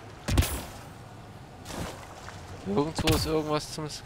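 Water splashes as a person wades.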